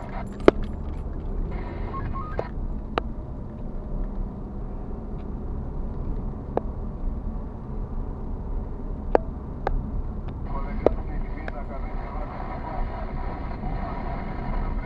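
Tyres roll and rumble over the road.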